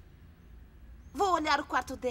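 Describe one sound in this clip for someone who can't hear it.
A young girl speaks sharply and close.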